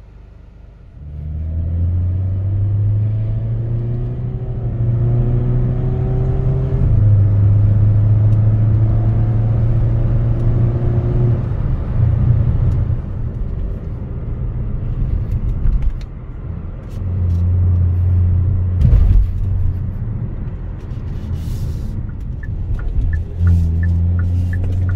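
A car engine drones and rises in pitch as the car speeds up.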